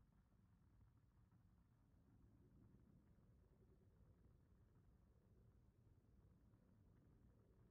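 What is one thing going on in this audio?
Spaceship engines hum with a low, steady rumble.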